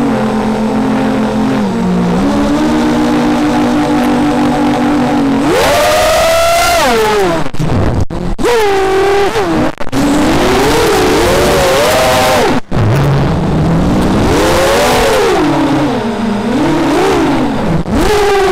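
Small electric drone motors whine loudly, their pitch surging and dropping with each burst of speed.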